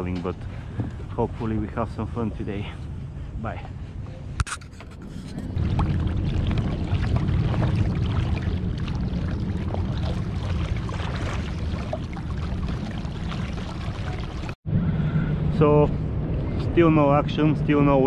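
Water laps against the hull of a small boat.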